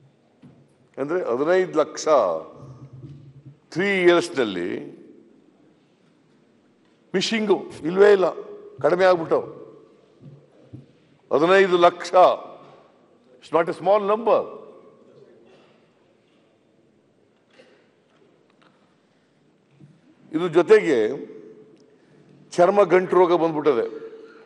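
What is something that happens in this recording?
An elderly man speaks with animation through a microphone, in bursts with pauses.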